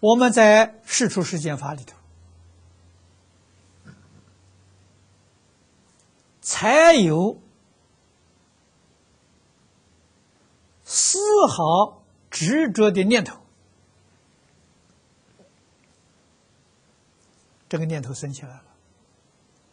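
An elderly man speaks calmly and slowly into a microphone, with long pauses.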